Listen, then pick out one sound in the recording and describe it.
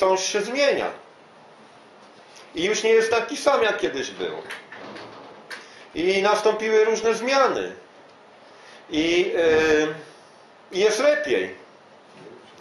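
An older man speaks calmly in short phrases with pauses, close by.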